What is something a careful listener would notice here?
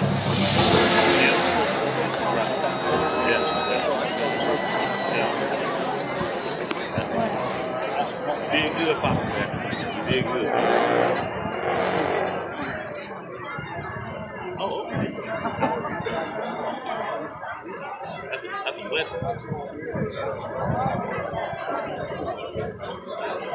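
A crowd chatters and cheers nearby.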